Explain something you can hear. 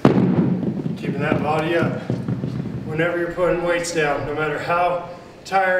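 A man speaks with energy close to a microphone, coaching.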